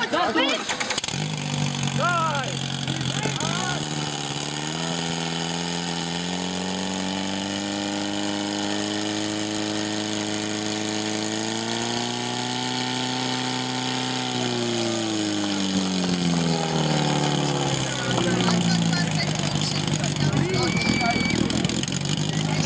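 A portable pump engine starts up and roars, rising in pitch, holding steady, then dropping.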